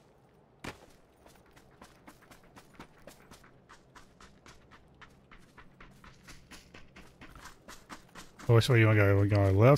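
Footsteps tread quickly over ground and grass.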